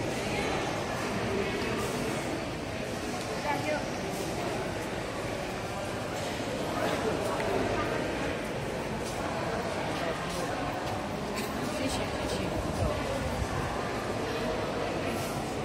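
A large crowd chatters steadily in a big echoing hall.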